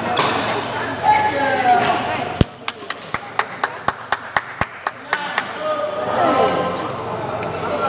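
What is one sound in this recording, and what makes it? Men chat and call out in an echoing hall.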